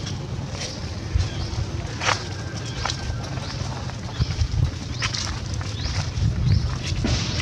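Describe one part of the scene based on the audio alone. Dry leaves rustle and crackle under a monkey's footsteps.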